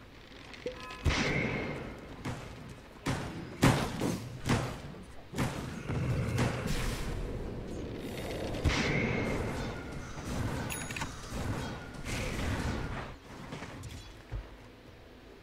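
Spell blasts and weapon hits crackle and boom in quick bursts.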